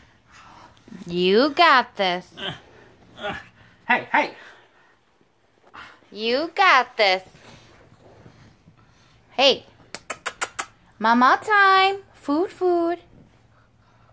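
A baby squeals and giggles close by.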